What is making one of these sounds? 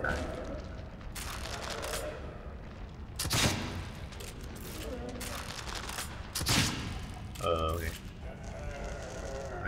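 A crossbow fires bolts with sharp snaps.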